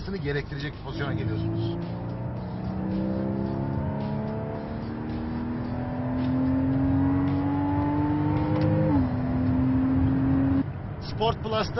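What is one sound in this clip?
A sports car engine revs high and shifts gears.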